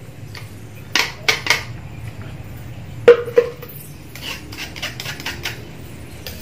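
A spoon clinks against a cup.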